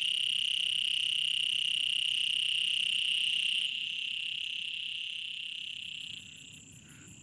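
A frog calls with a steady, high trill.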